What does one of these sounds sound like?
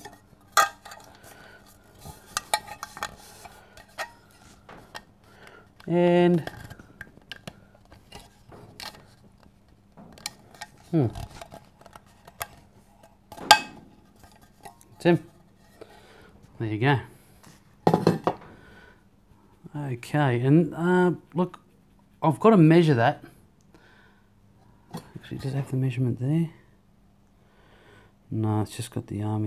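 Metal clinks and scrapes as a tin cup is handled.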